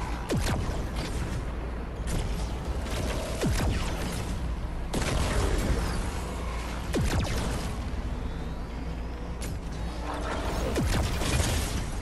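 Energy blasts zap with falling whistles.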